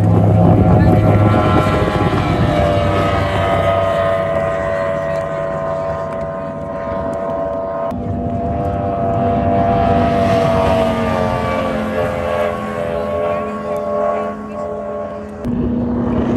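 A speedboat engine roars loudly past at high speed and fades into the distance.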